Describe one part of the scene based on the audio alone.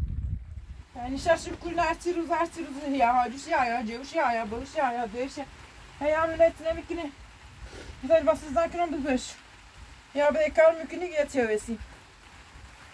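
A woman speaks nearby with animation.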